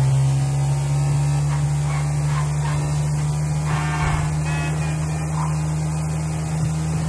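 A motorcycle engine hums steadily as it rides along.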